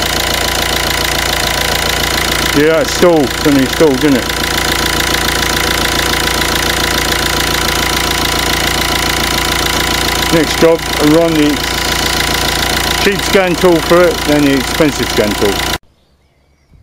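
A four-cylinder diesel car engine idles.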